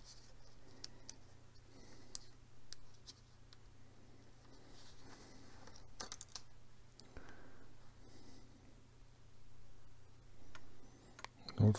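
Small plastic parts click and tap as fingers handle them.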